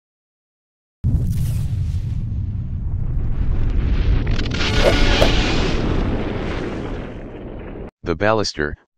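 A huge explosion booms and rumbles on, slowly fading.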